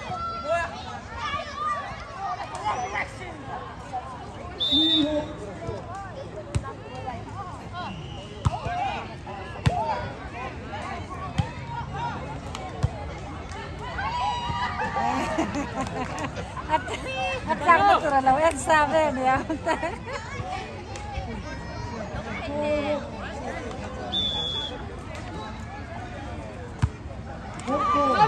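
A crowd of young people chatters and calls out outdoors.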